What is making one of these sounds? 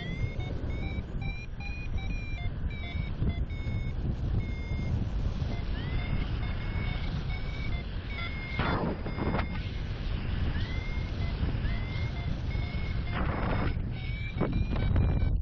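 Strong wind rushes and buffets steadily high in the open air.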